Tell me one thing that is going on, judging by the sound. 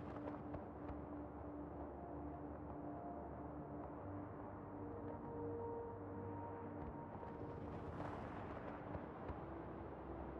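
Wind rushes steadily past a wingsuit gliding through the air.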